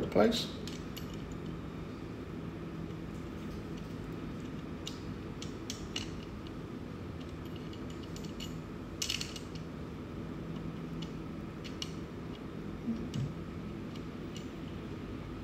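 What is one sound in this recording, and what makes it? Small metal parts clink and tap together.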